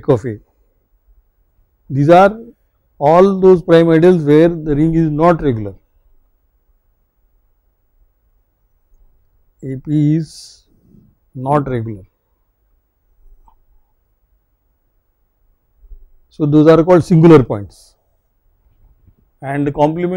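A marker pen scratches softly on paper.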